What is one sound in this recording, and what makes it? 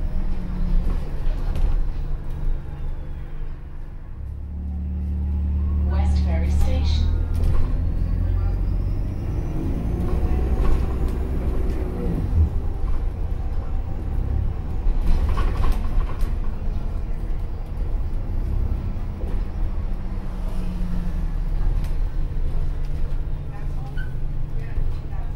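A bus engine rumbles low and steady from inside the bus, rising and falling as the bus drives.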